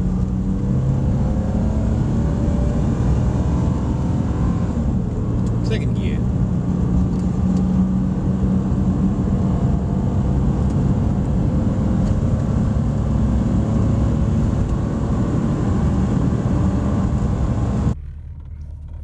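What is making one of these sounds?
A car engine drones steadily as the car accelerates.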